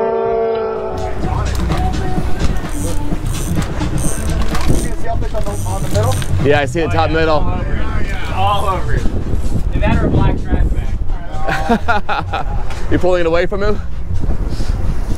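Waves splash against a moving boat's hull.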